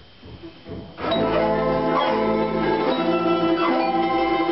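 A folk ensemble of accordion and plucked strings starts playing a lively tune.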